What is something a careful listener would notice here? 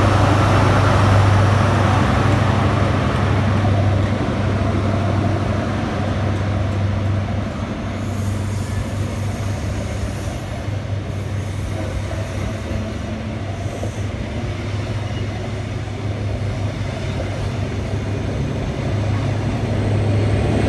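Train wheels clatter and roll along the rails as carriages pass.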